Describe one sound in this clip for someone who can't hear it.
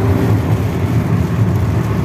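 A windscreen wiper sweeps across wet glass.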